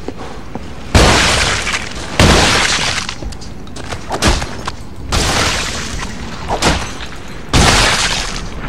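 A shotgun fires loud, booming blasts with a short echo.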